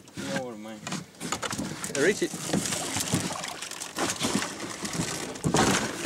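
A large fish thrashes and thumps against a boat's hull.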